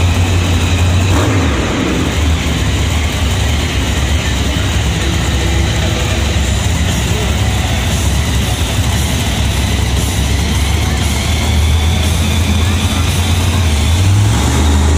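A monster truck engine idles with a deep, loud rumble.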